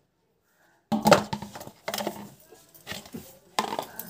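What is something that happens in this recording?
Plastic rustles and crinkles close by.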